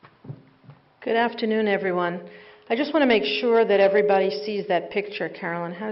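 A middle-aged woman speaks calmly into a microphone, heard through loudspeakers in a large room.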